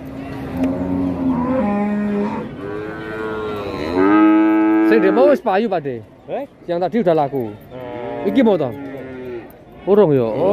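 A cow moos loudly nearby, again and again.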